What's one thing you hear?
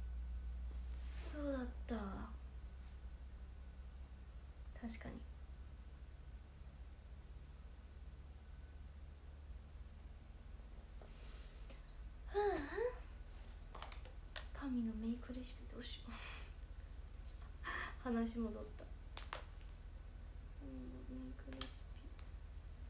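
A young woman talks casually, close by, in short bursts with pauses.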